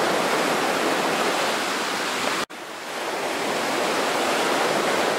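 Water rushes against a boat's hull.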